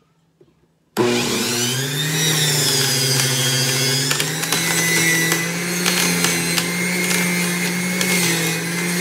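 A juicer whirs loudly as celery is pushed through it.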